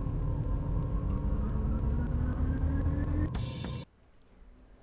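A car engine revs steadily higher in pitch, then cuts off abruptly.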